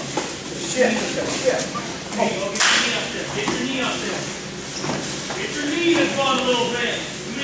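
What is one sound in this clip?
Bodies thump and scuffle on a padded mat.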